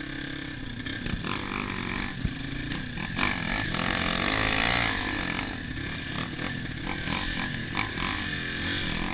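Another dirt bike engine buzzes nearby.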